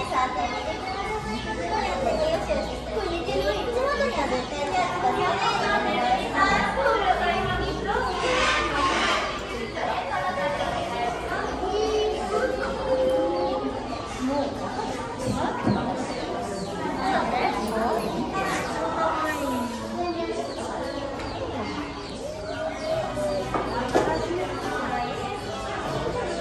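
Children and adults chatter nearby.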